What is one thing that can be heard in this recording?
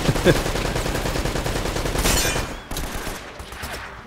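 A pistol fires two sharp shots.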